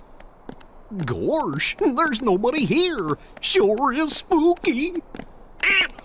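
A cartoon male character speaks in a goofy, drawling voice.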